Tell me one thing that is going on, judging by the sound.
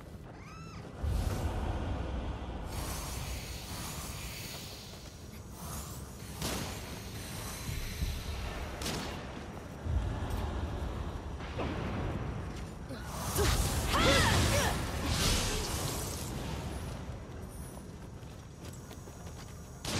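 Blades slash and clash in video game combat.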